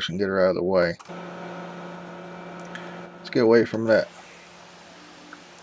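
A pressure washer runs with a steady hum.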